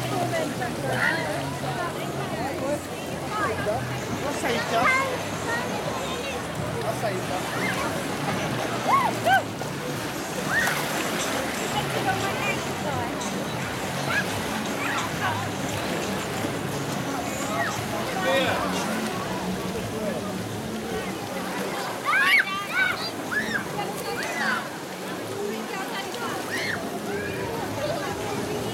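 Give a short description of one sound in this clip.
Water splashes as people move in a pool.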